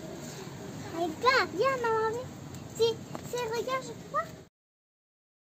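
A young girl speaks nearby in a high, lively voice.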